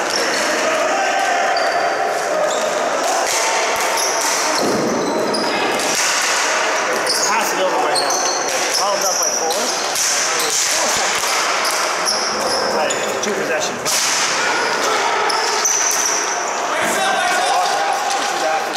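Young players shout to one another.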